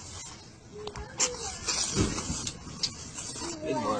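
Flames whoosh up briefly.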